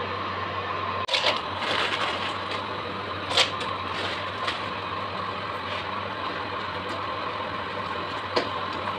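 Vegetables sizzle and crackle in hot oil.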